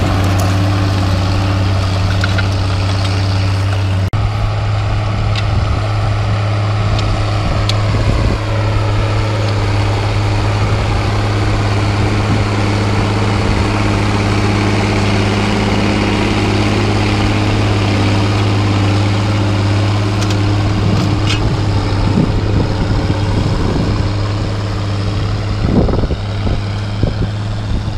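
A disc harrow rattles over rough soil.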